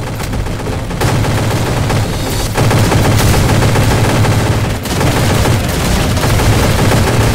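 An automatic rifle fires rapid bursts in a video game.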